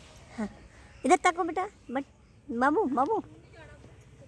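A young woman talks in a high, playful voice close by.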